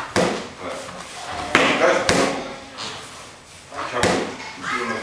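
Gloved punches thud sharply against padded mitts in an echoing hall.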